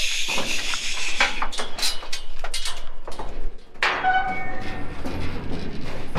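Cattle hooves clatter on a wooden floor.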